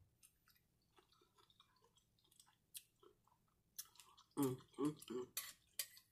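A fork clinks against a bowl.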